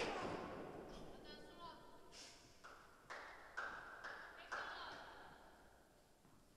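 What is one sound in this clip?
Sports shoes squeak on the court.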